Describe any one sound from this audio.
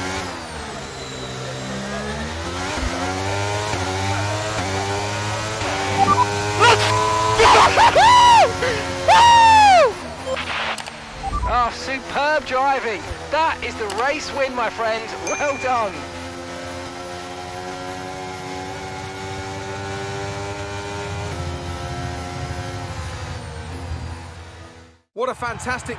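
A racing car engine screams, rising in pitch as it speeds up through the gears.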